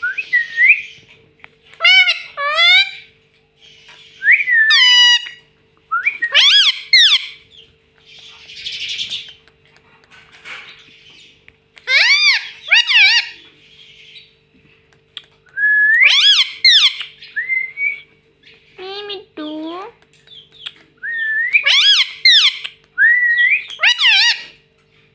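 A parrot squawks and chatters loudly, close by.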